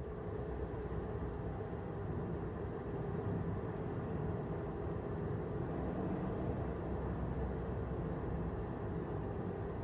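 A car engine hums steadily, heard from inside the car as it drives.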